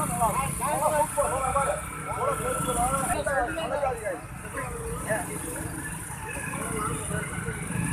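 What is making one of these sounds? Men talk nearby in lively voices.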